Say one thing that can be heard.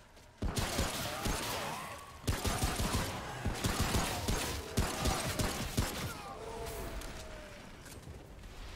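Creatures groan and snarl nearby.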